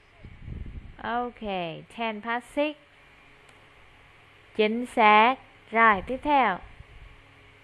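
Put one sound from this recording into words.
A woman speaks slowly and clearly over an online call.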